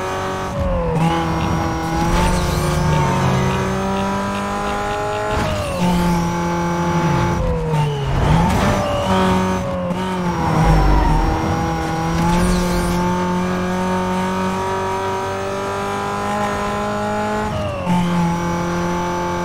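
A sports car engine races at high revs.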